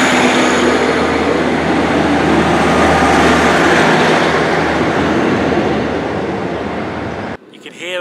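A train pulls away with a loud rumble of its engine and wheels that slowly fades.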